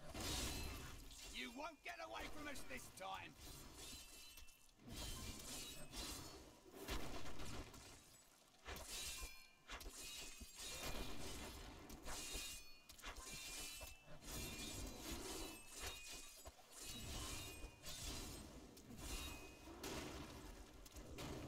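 Video game combat sounds clash and crackle throughout.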